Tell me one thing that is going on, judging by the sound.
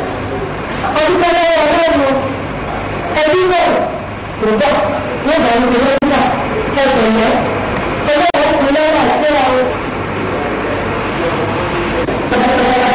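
A young woman speaks urgently up close.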